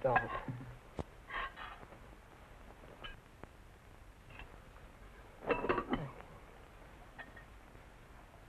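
Dishes and cutlery clink.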